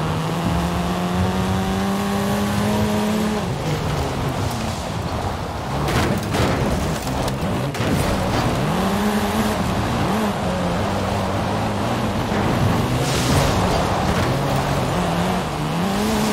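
Tyres crunch and skid over dirt and grass.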